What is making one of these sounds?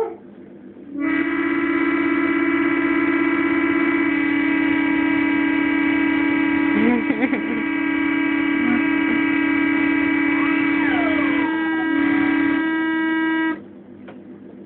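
A toy organ plays loud, steady held chords.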